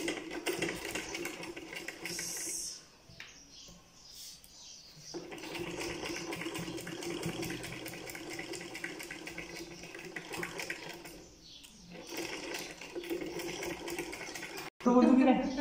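A sewing machine whirs and clatters as it stitches.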